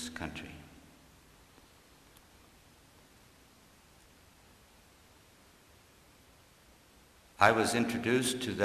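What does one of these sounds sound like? An elderly man speaks slowly and firmly into a microphone, with pauses.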